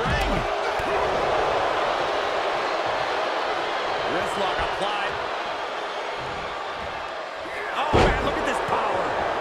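A large crowd cheers steadily in an arena.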